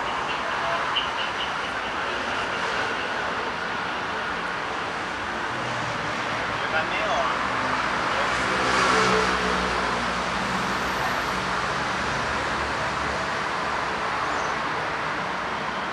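Steady traffic hums along a nearby street outdoors.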